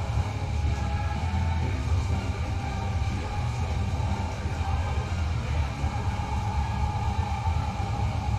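Fast electronic dance music plays with a pounding beat.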